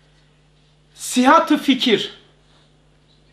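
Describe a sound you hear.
An elderly man reads aloud calmly, close to a microphone.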